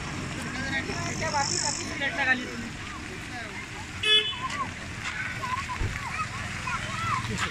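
Young people chatter nearby outdoors.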